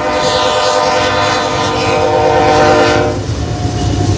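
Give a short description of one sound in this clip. A freight train horn blares loudly close by.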